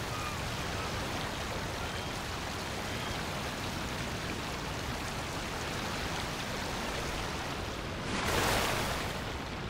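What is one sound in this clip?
A boat's hull rushes through water with steady splashing.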